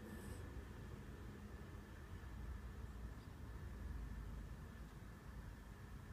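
A baby breathes softly while asleep, close by.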